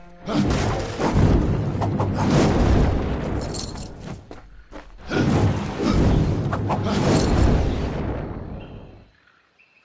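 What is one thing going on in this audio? Fiery blasts roar and crackle loudly.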